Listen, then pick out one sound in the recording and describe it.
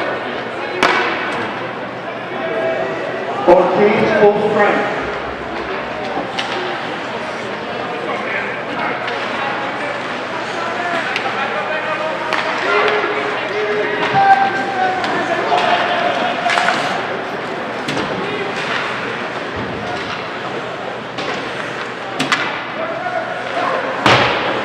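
Spectators talk and call out in an echoing ice rink.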